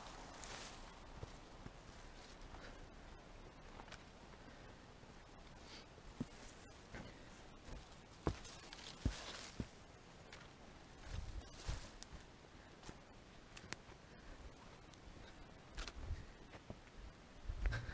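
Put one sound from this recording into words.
Footsteps crunch and rustle through dry forest undergrowth.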